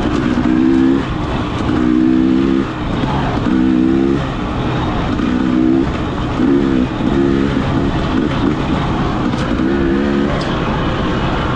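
Tyres crunch and bump over a rough dirt trail.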